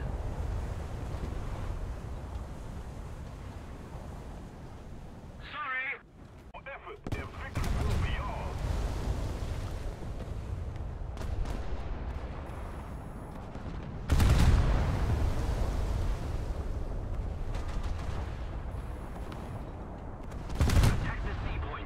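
Shells explode and send up water splashes.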